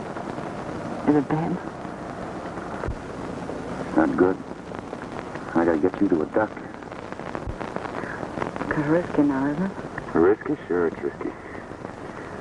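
A man speaks in a low, urgent voice, in short bursts.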